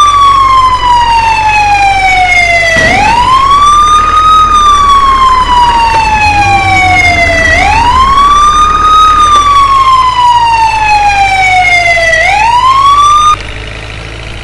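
An ambulance siren wails, slowly rising and falling.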